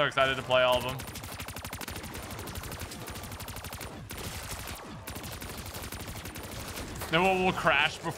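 A gun fires rapid bursts of automatic shots.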